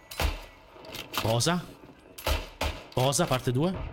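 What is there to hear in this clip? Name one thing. A rifle bolt clacks as cartridges are pushed in.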